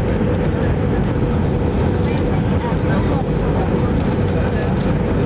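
Jet engines of an Airbus A321 on final approach roar, heard from inside the cabin.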